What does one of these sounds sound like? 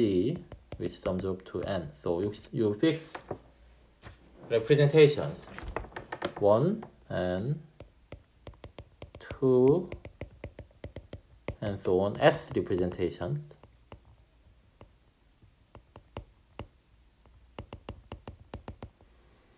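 A stylus taps and scrapes on a glass tablet.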